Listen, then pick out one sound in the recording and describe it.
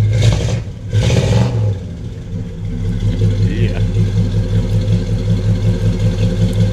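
A large car engine revs loudly and then settles into a deep, throbbing idle.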